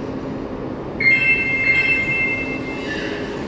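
A door chime plays a short melody of high beeps.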